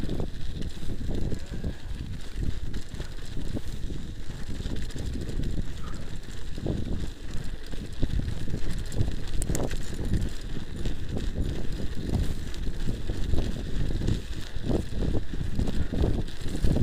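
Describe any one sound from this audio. Bicycle tyres crunch steadily over packed snow.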